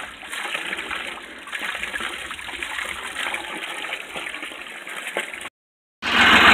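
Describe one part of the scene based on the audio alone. Water pours from a hose into a tub.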